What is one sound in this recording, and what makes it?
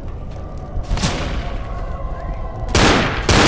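A pistol fires loud, sharp shots.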